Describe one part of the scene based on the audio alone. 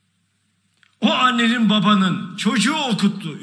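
An elderly man speaks forcefully into microphones, heard through a loudspeaker in a large hall.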